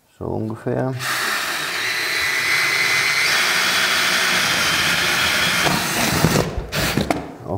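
A power drill whirs steadily, close by.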